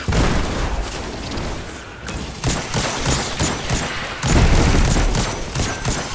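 Energy bolts crackle and whizz past.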